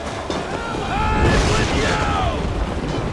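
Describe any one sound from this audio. Thunder cracks with a loud rumbling boom.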